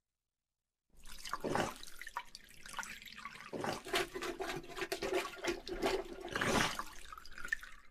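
A hand rummages and splashes inside a toilet bowl.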